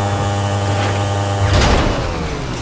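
A motorcycle engine drones steadily.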